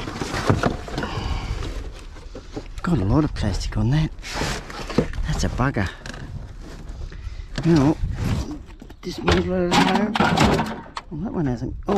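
A plastic fan frame clatters and scrapes as it is lifted and handled.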